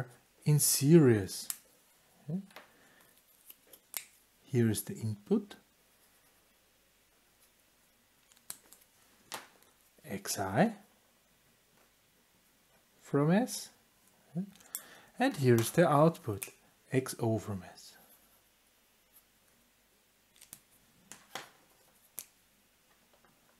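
A pen clacks down onto a table.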